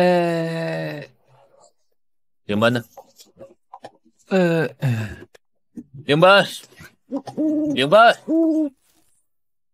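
A young man speaks with surprise, close by.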